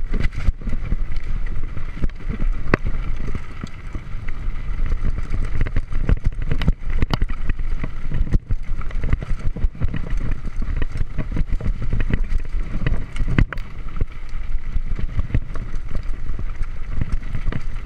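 A bicycle's frame and chain clatter over bumps.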